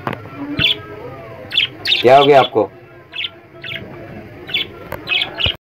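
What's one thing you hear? Budgies chirp and warble close by.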